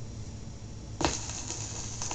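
A stylus drops onto a spinning record with a soft thump.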